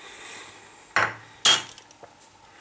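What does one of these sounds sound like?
A spoon clatters down onto a wooden board.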